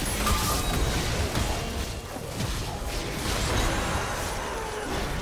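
Game spell effects crackle and burst in a battle.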